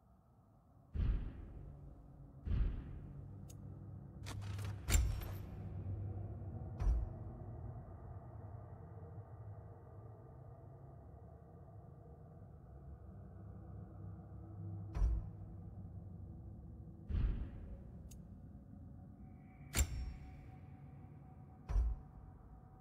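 Soft menu clicks sound now and then.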